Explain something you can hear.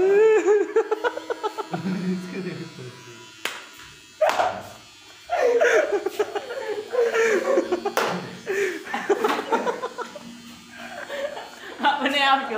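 An electric hair trimmer buzzes close by.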